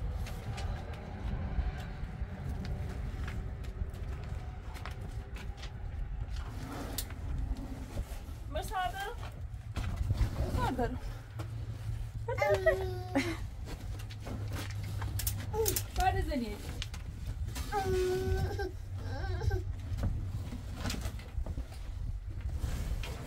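Heavy cloth rustles and flaps as it is handled.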